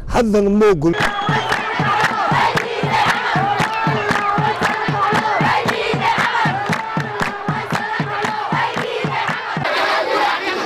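A crowd of women sings and chants together loudly.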